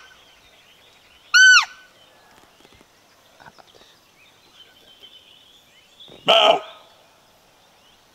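A roe deer barks hoarsely nearby.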